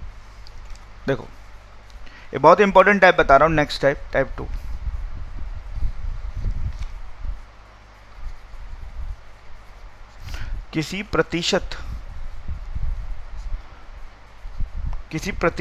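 A man speaks calmly and close to a headset microphone, in short bursts with pauses.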